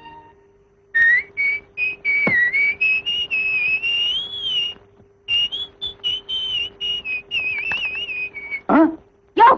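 A man whistles a tune.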